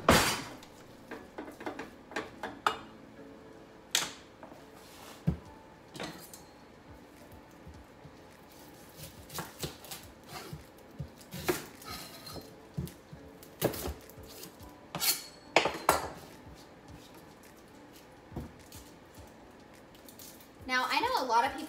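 Utensils knock and clatter on a countertop.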